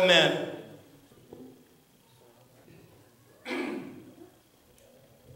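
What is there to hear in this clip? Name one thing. A man chants in short phrases through a microphone in a large echoing hall.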